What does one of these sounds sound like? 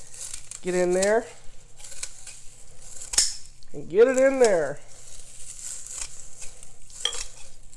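Leafy herb stems rustle and snap as they are picked by hand.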